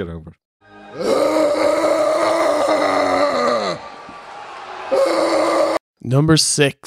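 A man shouts long, drawn-out words into a microphone over a loudspeaker, heard in a large echoing arena.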